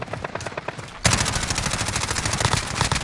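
Gunfire rattles in a rapid, steady burst.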